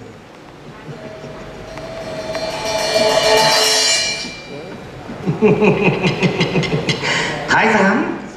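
A young man sings out theatrically.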